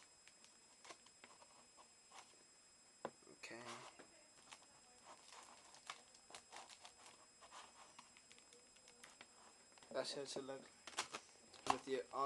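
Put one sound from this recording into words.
Aluminium foil crinkles and rustles as a hand squeezes it.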